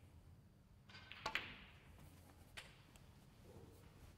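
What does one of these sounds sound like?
Snooker balls knock against each other.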